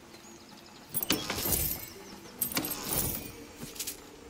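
A wooden chest creaks open with a burst of chiming.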